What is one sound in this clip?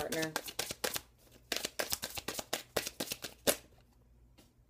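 Playing cards riffle and flick rapidly, close by.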